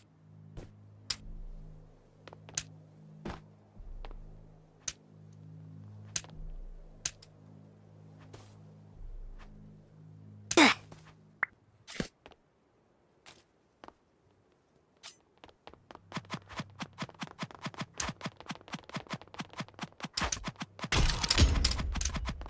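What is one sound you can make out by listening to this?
Sword hits land with sharp game impact sounds.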